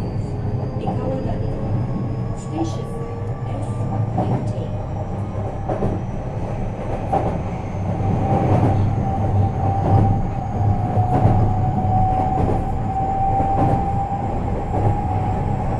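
An electric train hums steadily.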